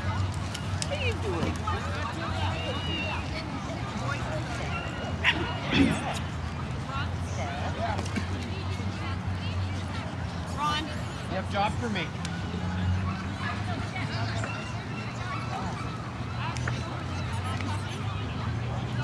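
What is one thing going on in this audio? A crowd murmurs and chatters outdoors in the background.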